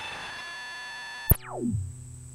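A modular synthesizer plays a buzzing chord.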